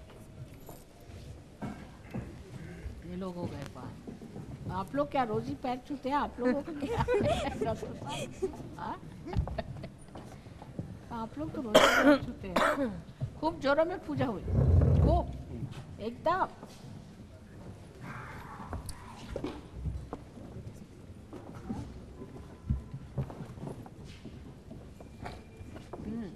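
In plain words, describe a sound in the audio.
A crowd of men and women chatters in an echoing hall.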